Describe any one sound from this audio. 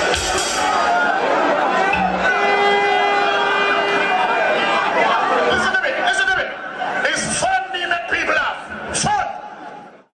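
A man raps loudly into a microphone over loudspeakers.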